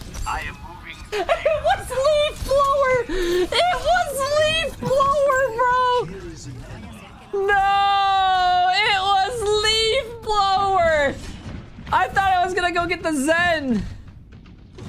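A young man shouts and laughs excitedly close to a microphone.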